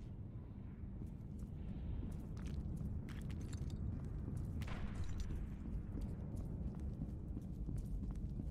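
Footsteps tap on hard stairs.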